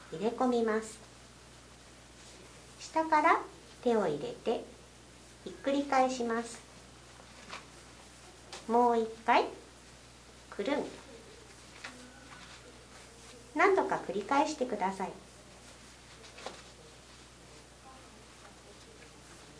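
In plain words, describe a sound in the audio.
Cloth rustles softly as hands fold it.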